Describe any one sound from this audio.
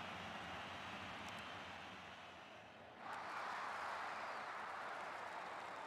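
A stadium crowd cheers and roars, swelling louder partway through.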